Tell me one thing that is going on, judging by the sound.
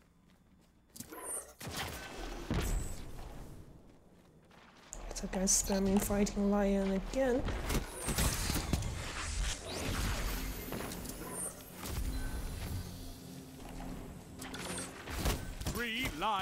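A sword swings and strikes with sharp clashes in a game.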